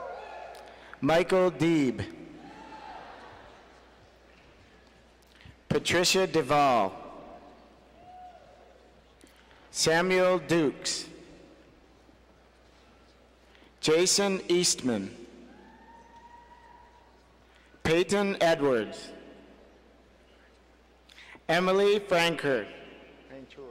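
A man reads out names through a loudspeaker in a large echoing hall, in short bursts.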